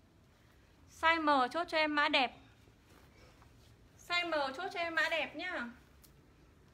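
A young woman talks close up with animation.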